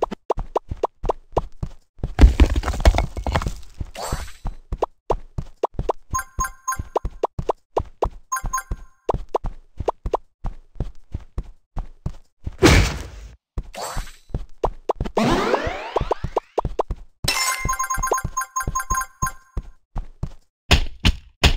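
Quick game pops sound in a rapid run as figures are collected.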